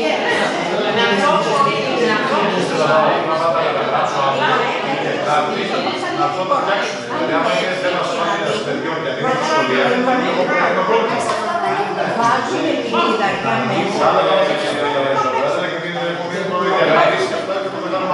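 A middle-aged man speaks steadily at a meeting, close by in a room.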